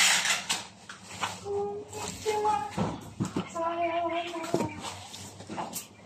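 A cardboard box flap folds and scrapes shut.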